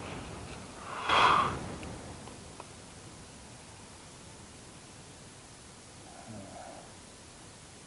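Dry twigs and needles rustle and crackle close by.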